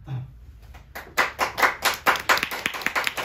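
An acoustic guitar is strummed in a steady rhythm.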